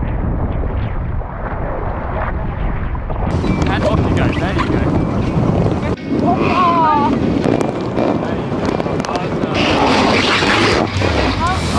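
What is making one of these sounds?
Wind gusts across the open water.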